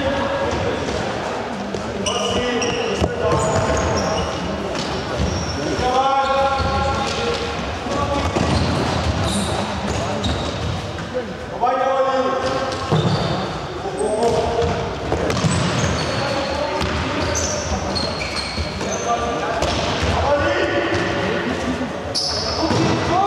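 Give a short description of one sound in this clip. Young players shout to each other in a large echoing hall.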